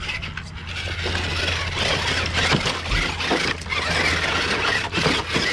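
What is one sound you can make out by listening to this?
Water splashes as a toy truck drives through a shallow pool.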